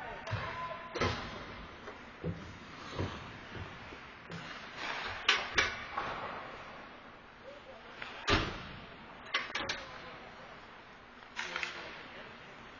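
Hockey sticks clack sharply against the puck and the boards, echoing in a large hall.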